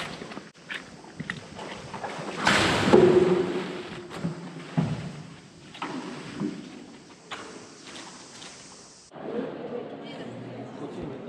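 A young woman cries out and moans into a microphone, echoing through a large hall.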